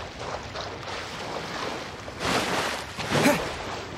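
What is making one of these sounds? A character splashes while wading through water.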